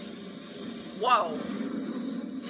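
A woman screams sharply.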